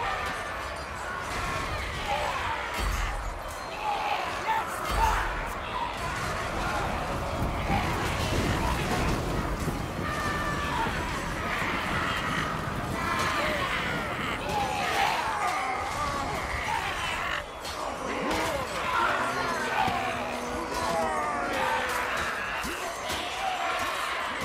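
A large crowd of warriors shouts and roars loudly.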